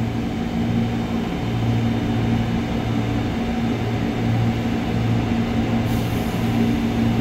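A stationary electric train hums steadily close by.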